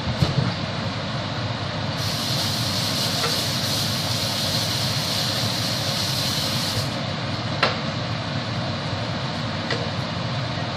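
A knife chops on a cutting board with sharp knocks.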